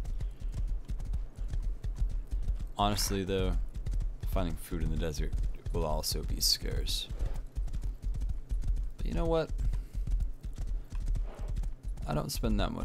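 Horse hooves clop steadily on a hard road.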